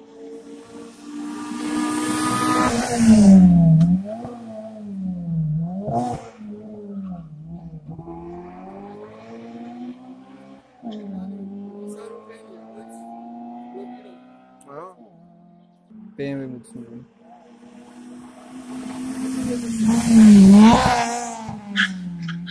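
Racing car engines roar loudly as cars speed past close by, one after another.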